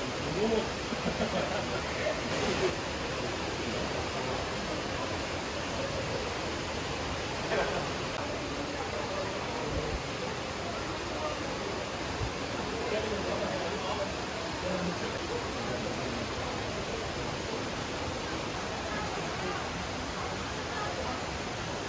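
Water rushes and splashes steadily down a stone channel.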